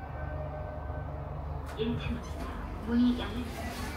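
An elevator door slides open.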